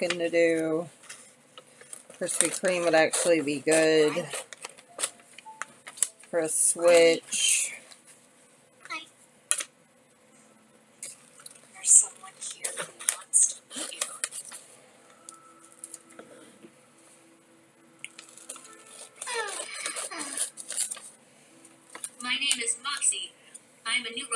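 Paper rustles and crinkles in hands.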